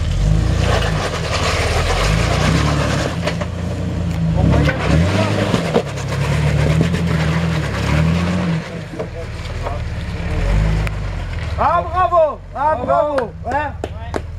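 A jeep engine rumbles and revs hard while climbing.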